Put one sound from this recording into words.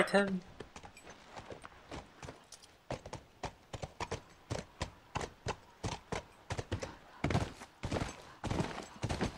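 Horse hooves clop steadily on pavement.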